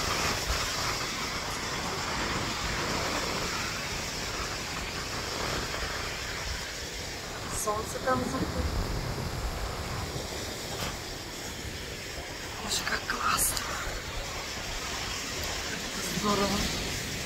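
A middle-aged woman talks calmly and close to the microphone.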